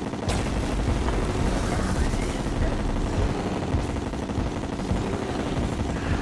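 A laser beam hums and crackles as it fires.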